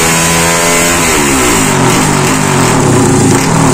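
A motorcycle engine drops off sharply and winds down.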